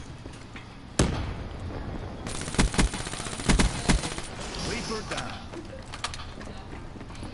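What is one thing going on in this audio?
Gunshots ring out in short, loud bursts.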